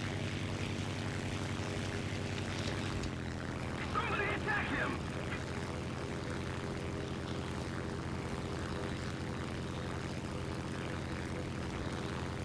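A propeller engine drones steadily close by.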